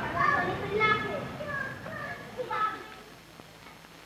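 A young boy speaks nearby.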